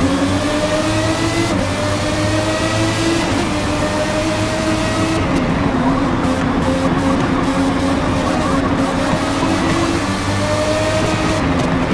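A racing car engine screams at high revs, its pitch rising and dropping with gear changes.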